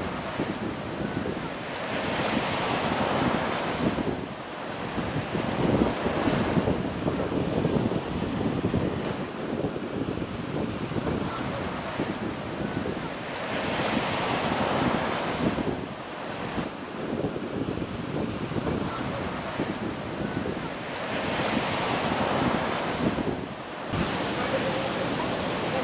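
Waves crash and wash onto a beach in rolling surges.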